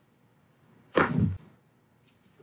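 A neck cracks sharply.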